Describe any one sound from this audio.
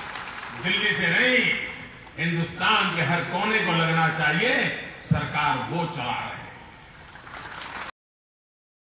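An elderly man speaks forcefully into a microphone over a loudspeaker.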